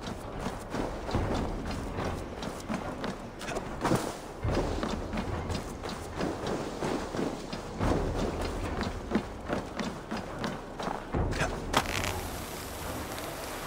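Footsteps crunch steadily through snow and over the ground.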